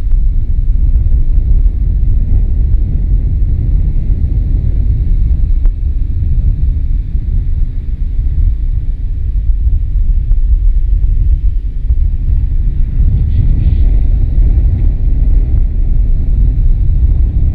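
Strong wind rumbles steadily outdoors.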